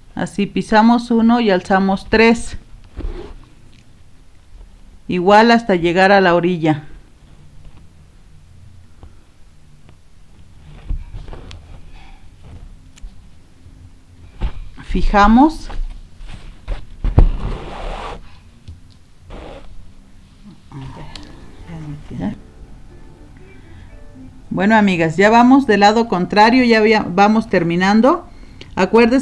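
A needle and thread pull softly through fabric.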